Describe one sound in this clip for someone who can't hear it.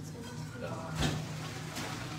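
A metal pot clanks against a sink.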